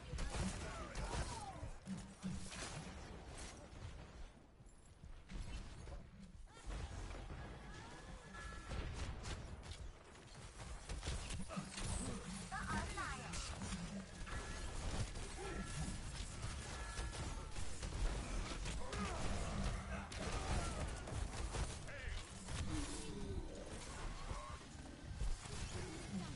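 Weapons fire and explosions burst in a video game.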